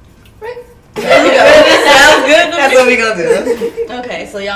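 Young women laugh loudly together close by.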